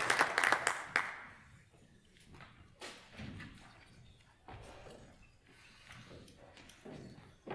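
Instruments and music stands knock softly in a large hall.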